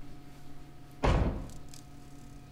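A heavy door thuds shut.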